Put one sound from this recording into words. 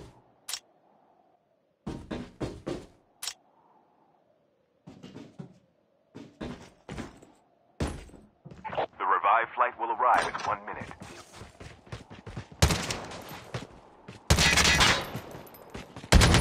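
Footsteps thud quickly on hard floors and stairs.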